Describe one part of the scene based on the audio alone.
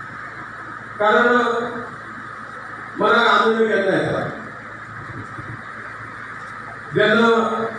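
An elderly man speaks with emphasis into a microphone, heard through loudspeakers in an echoing hall.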